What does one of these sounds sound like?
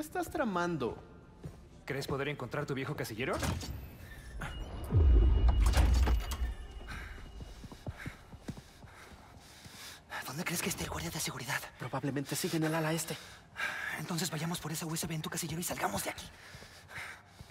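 A young man asks questions in a calm, friendly voice.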